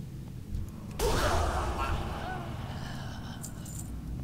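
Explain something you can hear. A magical blast bursts with a loud whoosh.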